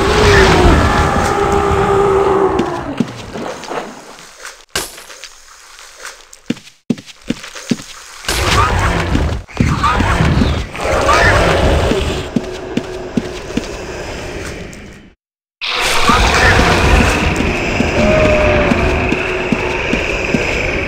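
Blows and magic effects crash and clatter in a fight.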